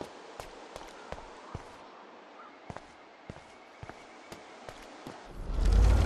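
Footsteps walk at a steady pace.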